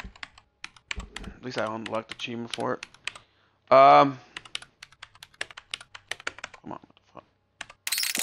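Keyboard keys click rapidly.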